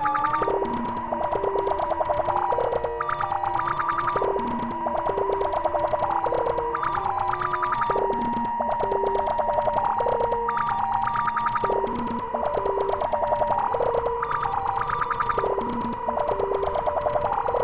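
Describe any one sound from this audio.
A drum machine plays a looping electronic pattern of pitched beeping notes.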